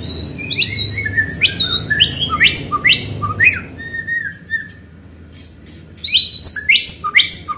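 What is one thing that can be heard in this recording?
A songbird sings loud, rich whistling phrases close by.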